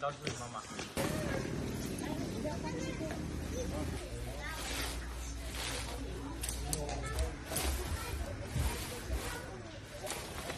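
Tent fabric rustles and flaps as it is unfolded and spread out.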